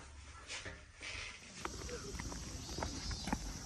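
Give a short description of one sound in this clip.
Sandals slap on a paved path outdoors.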